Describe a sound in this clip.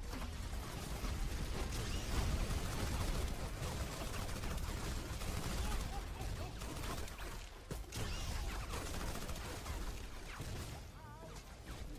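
Explosions boom with a low rumble.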